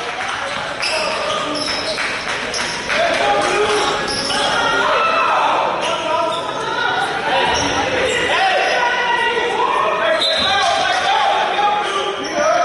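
A crowd of spectators chatters nearby.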